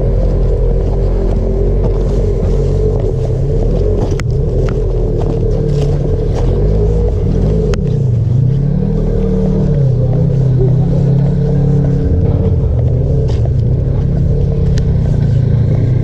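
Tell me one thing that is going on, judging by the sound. A motorbike engine revs and drones up close, rising and falling.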